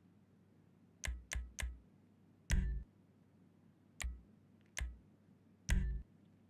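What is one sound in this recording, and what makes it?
Short menu clicks sound as selections change.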